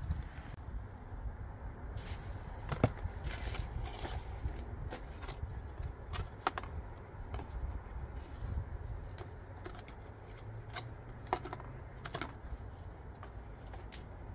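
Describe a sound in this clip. A paper pot crinkles and rustles in a person's hands.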